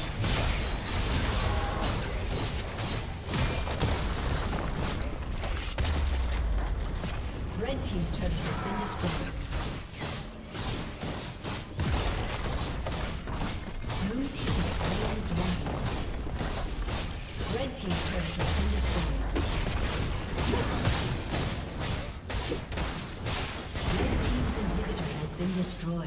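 Game spell and weapon effects crackle and clash in a fast battle.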